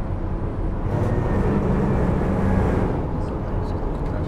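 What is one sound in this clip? A truck rumbles past close by.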